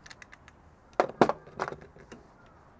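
A plastic part snaps with a sharp crack.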